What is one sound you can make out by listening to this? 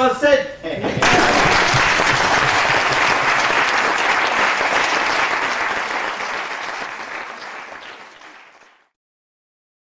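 An audience applauds loudly in a hall, then the clapping fades away.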